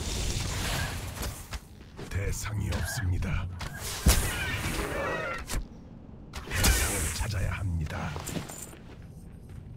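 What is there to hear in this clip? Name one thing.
Blows thud and clash in combat.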